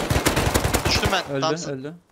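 A rifle fires a rapid burst at close range.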